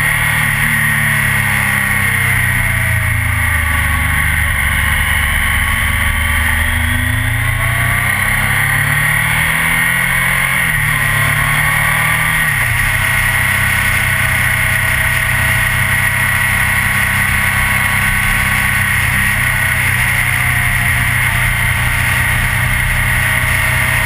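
A motorcycle engine roars up close, its pitch rising and falling with the gears.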